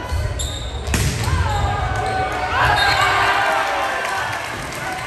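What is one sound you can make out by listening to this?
Young men shout and cheer loudly.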